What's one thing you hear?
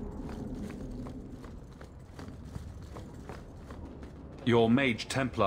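Footsteps tap steadily on a hard floor in a large echoing hall.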